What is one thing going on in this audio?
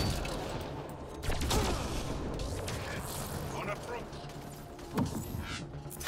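Heavy blows thud and crack in a close fight.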